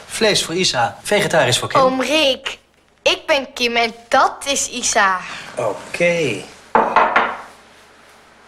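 A young girl speaks with animation.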